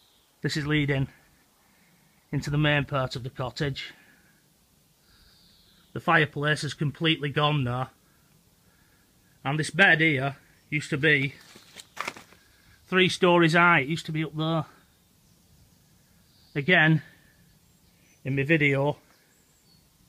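A man speaks in short, calm phrases.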